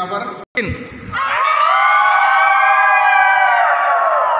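Several boys shout a long call together through cupped hands, echoing around a large hall.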